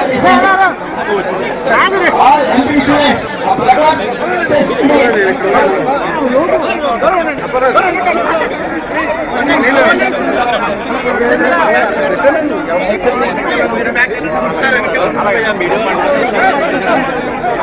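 A large crowd chatters loudly all around, with many voices overlapping.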